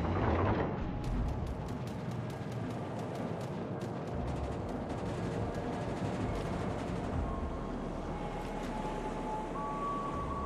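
Anti-aircraft guns pop in rapid bursts.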